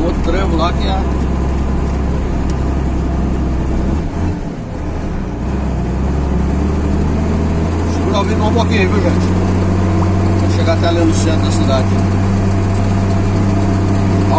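A vehicle engine hums steadily as it climbs a hill.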